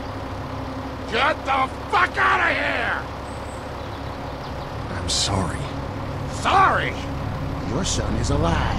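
An elderly man speaks in a low, strained voice close by.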